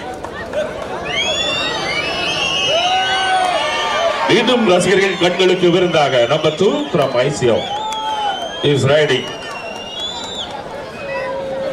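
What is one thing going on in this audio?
Spectators whistle loudly and shrilly.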